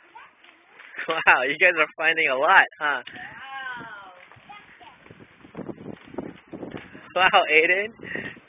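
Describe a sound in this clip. A young girl talks excitedly nearby in a high voice.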